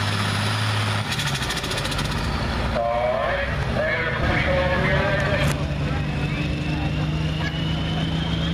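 A tractor engine idles and rumbles nearby.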